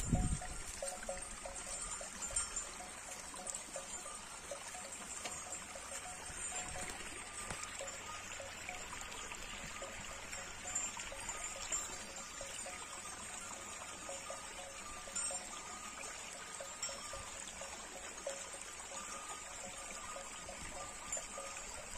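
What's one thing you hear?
Wind blows across an open hillside.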